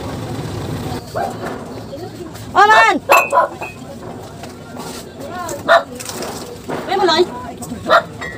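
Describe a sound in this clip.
A woman speaks close by, with animation.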